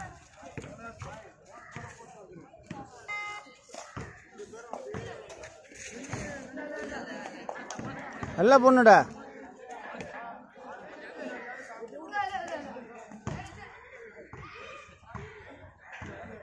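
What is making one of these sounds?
A crowd of young men chatters and shouts outdoors.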